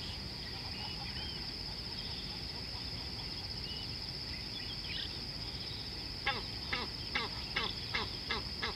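River water flows gently.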